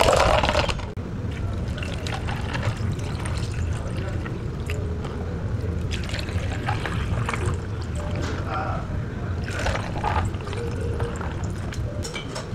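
Water pours over ice in plastic cups.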